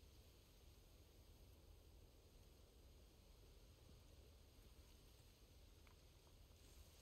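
A low wind rumbles steadily outdoors.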